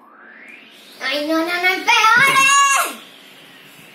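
A young girl shouts excitedly.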